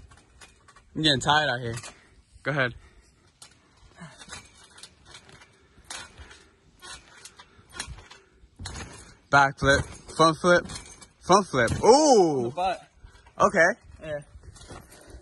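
A young man talks and exclaims outdoors.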